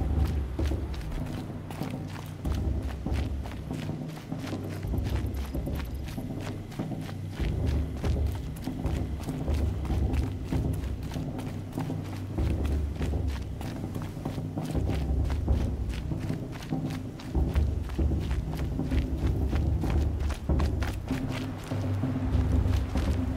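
Footsteps crunch quickly over snowy ground.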